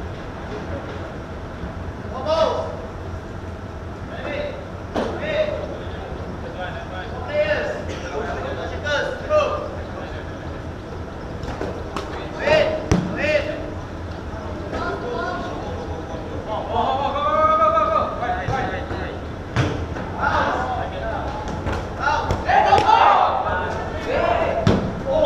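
Children shout and call out across a large echoing covered court.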